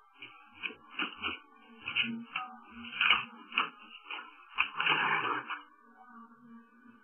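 A printer whirs and clicks in quick bursts as it feeds paper.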